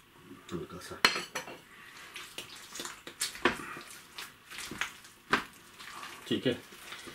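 Gloved hands squish and squelch through a thick, wet mixture in a bowl.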